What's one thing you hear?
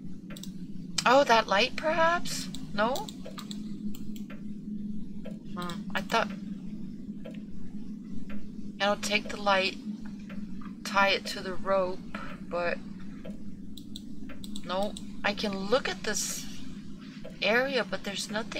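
A young woman talks with animation into a nearby microphone.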